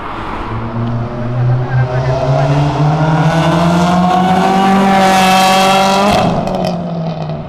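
A car engine roars as it accelerates hard past.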